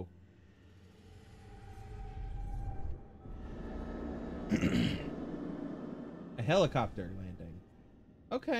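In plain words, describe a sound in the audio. A low rumbling whoosh swells and fades.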